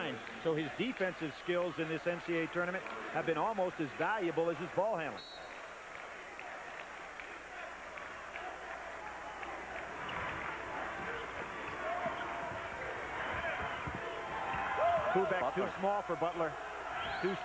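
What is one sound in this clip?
A large crowd murmurs in a big echoing arena.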